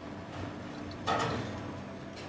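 Glasses clink together in a toast.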